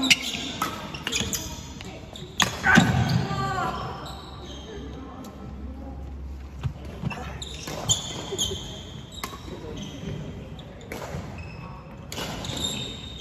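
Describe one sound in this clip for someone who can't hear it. Shuttlecocks smack off rackets in a large echoing hall.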